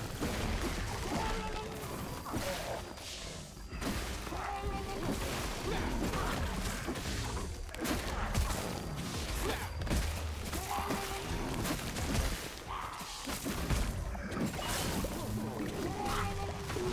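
Game sound effects of magic blasts and lightning crackle in quick bursts.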